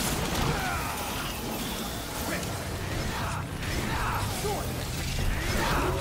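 A blade swishes and slashes repeatedly in a fight.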